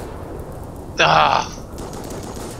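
Thunder cracks loudly.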